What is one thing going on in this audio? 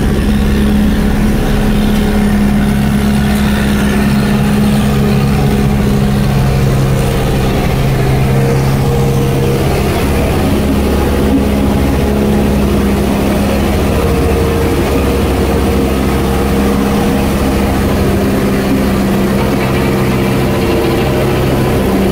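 A heavy steel drum rolls and crunches over packed dirt.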